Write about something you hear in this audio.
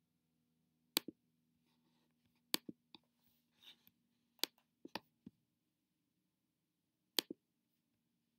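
A computer mouse clicks several times.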